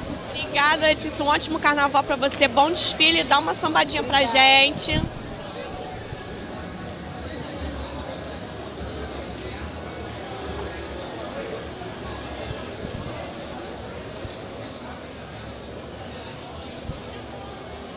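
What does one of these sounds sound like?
A crowd murmurs and chatters in the background outdoors.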